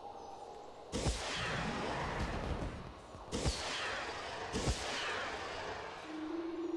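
Fireworks burst with loud crackling pops.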